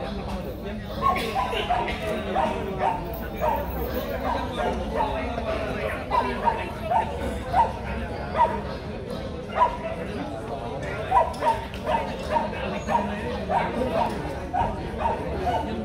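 A dog yelps and barks repeatedly.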